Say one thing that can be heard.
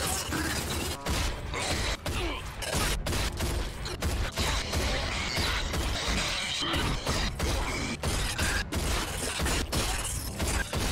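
Shotgun blasts ring out again and again.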